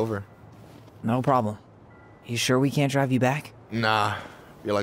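A young man answers calmly.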